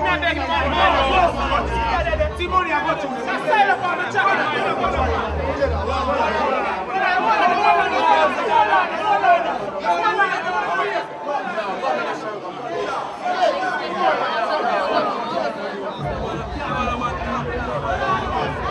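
A crowd of young men and women talk and shout over each other close by.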